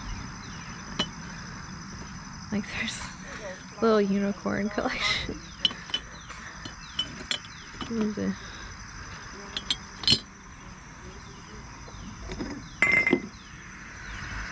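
Ceramic figurines clink against each other.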